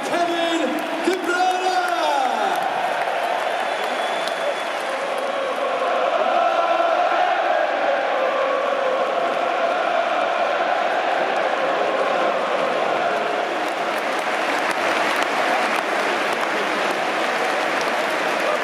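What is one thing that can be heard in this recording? A large crowd of men chants and sings loudly in a big open stadium.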